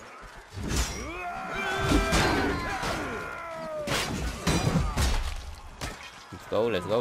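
Steel swords clang against armour and shields.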